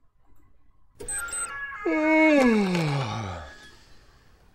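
A warped tape sound slides sharply down in pitch.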